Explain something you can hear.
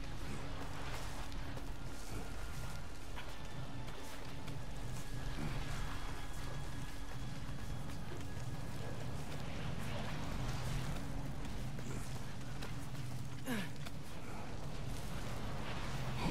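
Hands and boots scrape on rock during a climb up a cliff face.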